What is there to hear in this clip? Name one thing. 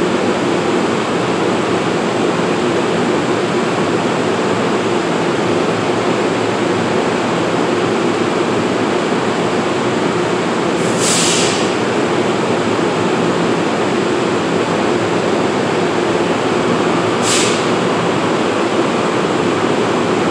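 A parked train hums and whirs steadily in an echoing station.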